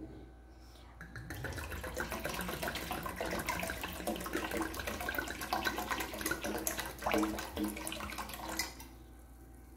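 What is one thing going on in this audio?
Water pours and splashes into a pan of liquid.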